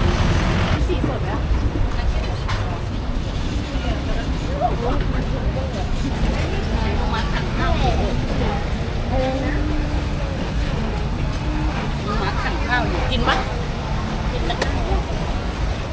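A crowd murmurs in a busy market.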